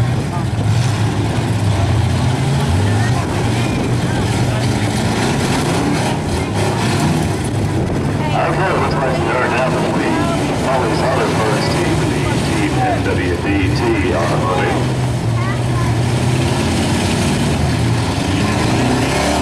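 Car engines rumble and rev nearby, outdoors.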